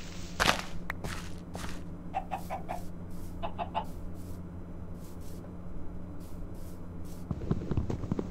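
Game footsteps patter over grass.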